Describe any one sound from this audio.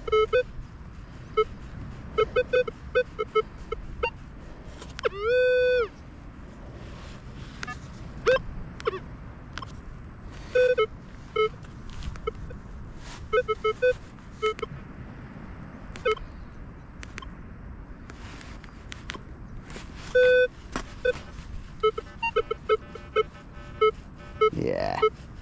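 A metal detector beeps in short, repeated pitched tones.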